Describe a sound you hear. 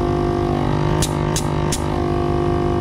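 Air hisses briefly through a valve.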